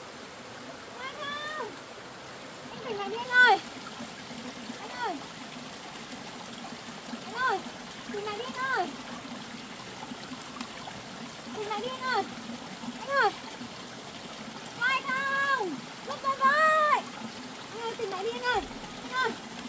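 A woman calls out loudly and anxiously again and again, close by.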